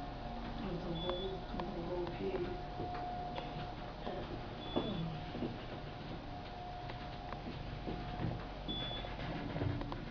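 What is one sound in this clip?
An elevator gives a short high beep as it passes each floor.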